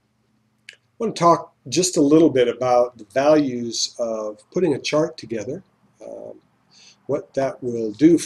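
A middle-aged man talks calmly and clearly into a close microphone.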